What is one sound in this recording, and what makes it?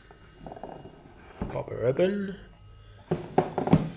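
A cardboard lid slides off a box.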